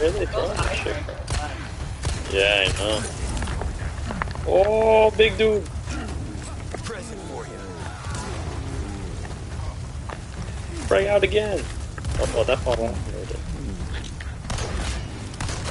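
A gun fires in sharp, loud shots.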